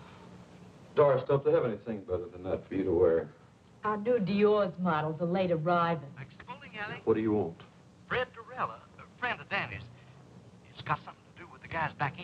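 A man speaks with urgency into a telephone nearby.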